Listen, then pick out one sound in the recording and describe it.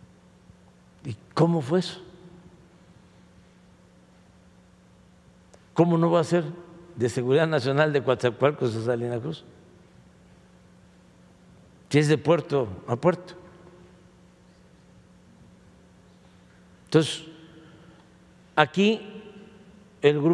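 An elderly man speaks calmly into a microphone in short bursts, with pauses between them.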